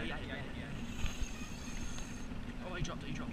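A fishing reel whirs as its handle is wound.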